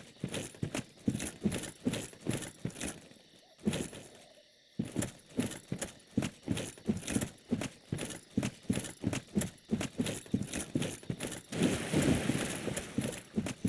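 Armored footsteps thud rhythmically on the ground.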